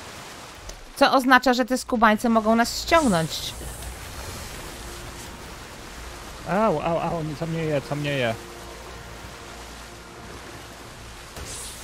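A large creature splashes as it wades through shallow water.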